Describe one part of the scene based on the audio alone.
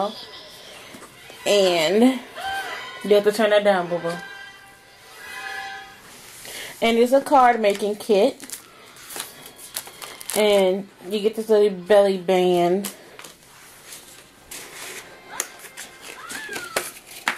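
Paper and cardboard rustle and tap as they are handled.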